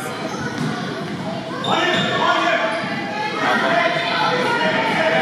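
Young children shout and cheer in a large echoing hall.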